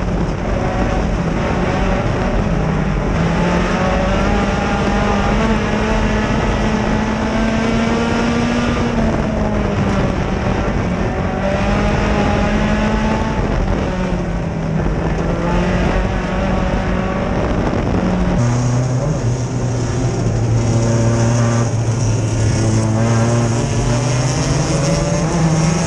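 A race car engine roars loudly close by, its pitch rising and falling as it speeds up and slows down.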